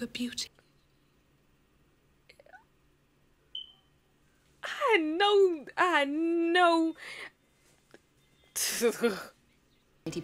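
A young woman speaks with animation close to a microphone, sometimes drawing out her words in a sing-song voice.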